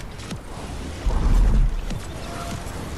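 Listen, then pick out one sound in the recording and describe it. A whooshing gust rushes past during a glide.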